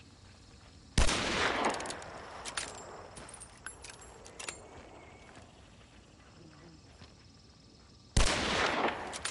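A revolver fires a loud shot that echoes away.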